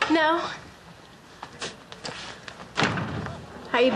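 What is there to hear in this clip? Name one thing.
A young woman answers cheerfully.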